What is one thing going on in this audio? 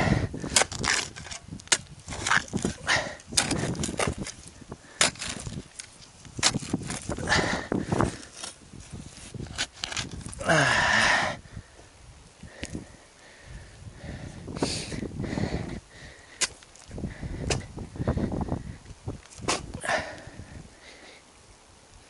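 A shovel scrapes and thuds into dry soil outdoors.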